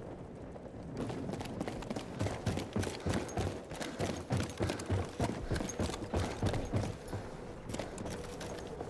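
Footsteps thud steadily up wooden stairs.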